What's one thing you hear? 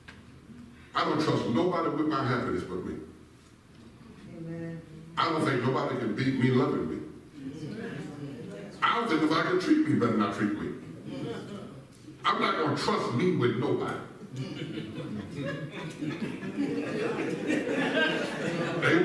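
A man preaches through a microphone with animation in a large echoing hall.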